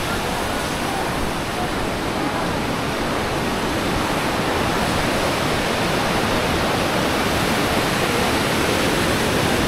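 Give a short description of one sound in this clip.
A river rushes loudly over rocks outdoors.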